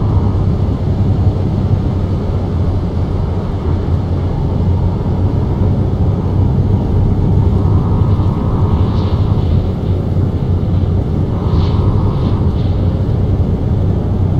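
Windscreen wipers swish back and forth.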